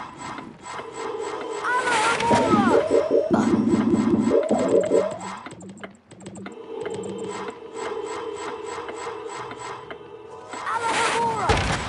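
A magic spell whooshes and sparkles with warbling tones.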